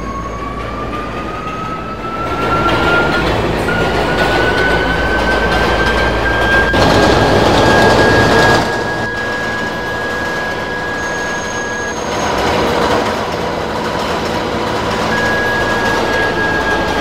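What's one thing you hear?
A subway train rumbles and clatters loudly along the track.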